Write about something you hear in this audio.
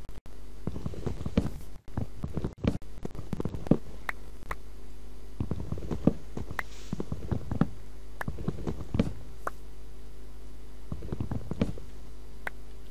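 An axe chops wood with quick, repeated knocks.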